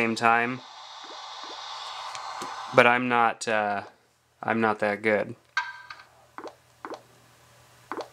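A phone game plays short electronic tones through a small speaker.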